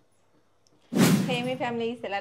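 A young woman greets loudly and cheerfully, close by.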